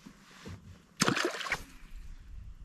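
A fishing rod swishes through the air in a cast.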